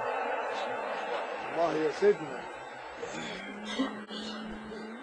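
A crowd of men murmurs and calls out.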